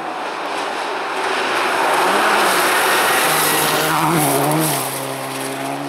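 Gravel sprays and crunches under tyres as a car speeds past close by.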